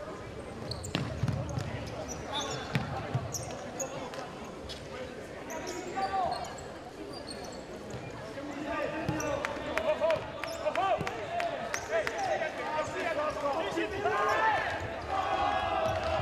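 A ball thumps off players' feet.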